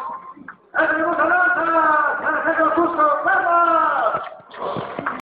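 A woman sings loudly through a loudspeaker outdoors.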